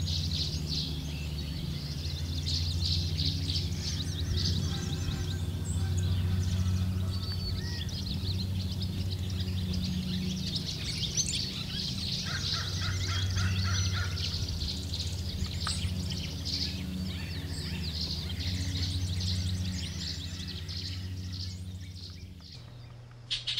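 Songbirds chirp and whistle busily close by.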